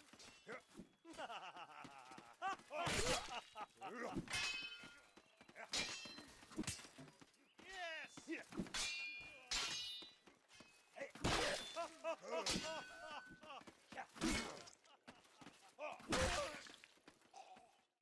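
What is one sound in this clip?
Swords swoosh through the air.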